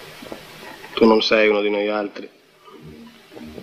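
A second man answers briefly, close by.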